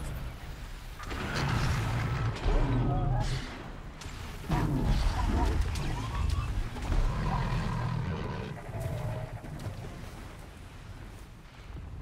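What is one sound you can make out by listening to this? Footsteps rustle through tall dry grass.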